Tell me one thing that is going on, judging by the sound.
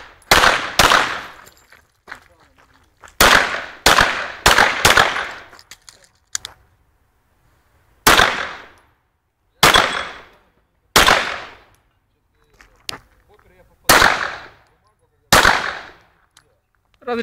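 A pistol fires shots outdoors, each crack ringing out briefly.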